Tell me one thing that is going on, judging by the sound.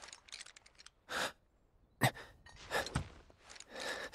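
A young man speaks hesitantly nearby.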